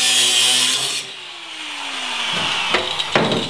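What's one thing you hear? An angle grinder winds down and falls quiet.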